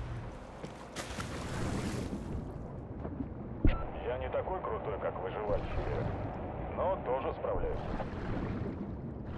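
Bubbles gurgle and water rushes underwater.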